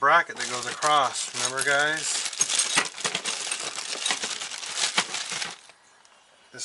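Plastic engine parts click and rattle under a man's hands.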